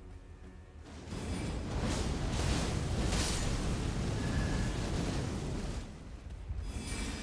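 Flames roar in a loud fiery blast.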